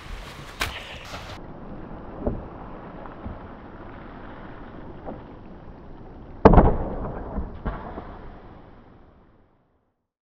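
A wakeboard hisses across the water.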